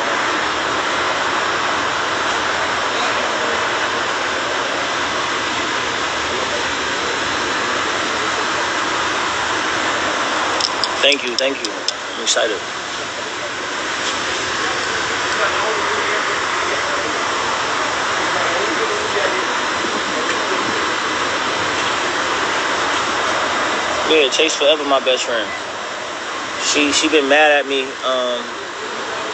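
Steady wind blows outdoors.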